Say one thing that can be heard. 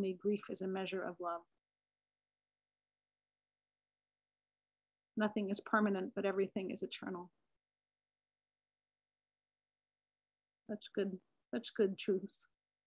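A middle-aged woman speaks calmly over an online call, in short bursts with pauses.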